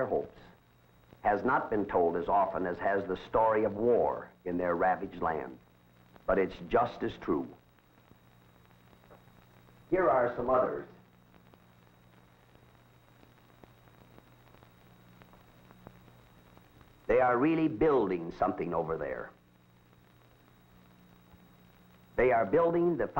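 A middle-aged man speaks calmly and steadily, close to the microphone.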